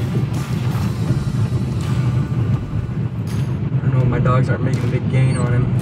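A car engine hums steadily with a low rumble from inside the car.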